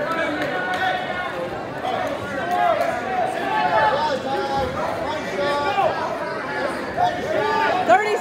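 Shoes squeak sharply and repeatedly on a wrestling mat.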